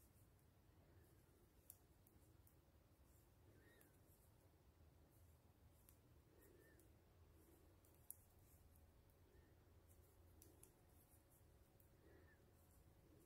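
Yarn rustles softly as hands twist it.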